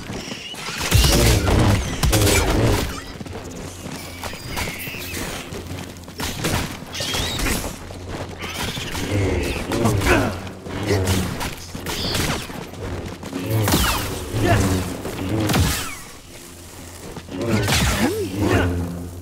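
Blades strike creatures with sharp crackling hits.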